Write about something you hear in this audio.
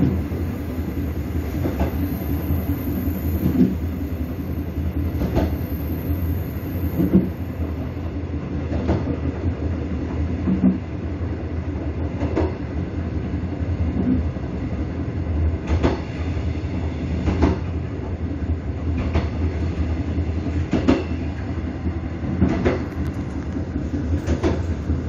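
Train wheels clatter over rail joints in a steady rhythm.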